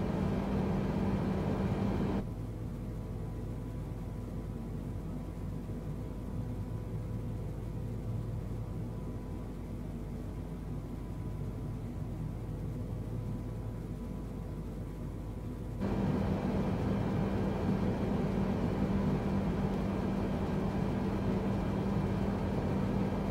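A loud, steady hum of jet engines fills a cockpit.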